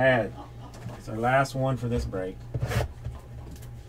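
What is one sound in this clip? A cardboard box slides and bumps onto a table.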